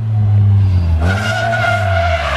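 Car tyres screech as a car drifts.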